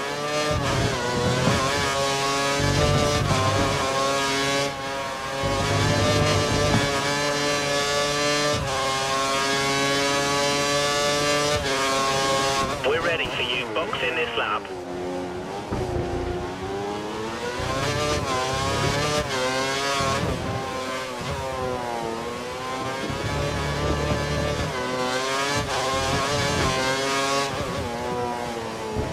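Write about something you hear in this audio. A Formula One car's V8 engine screams at high revs, climbing through upshifts.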